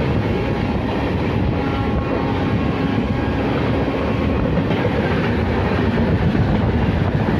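A passing train rumbles and clatters loudly on the tracks close by.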